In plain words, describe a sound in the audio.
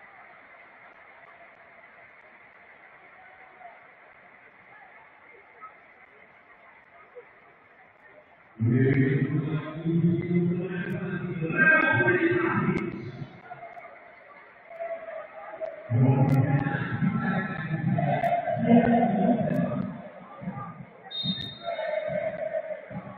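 A large stadium crowd murmurs and chants in the distance.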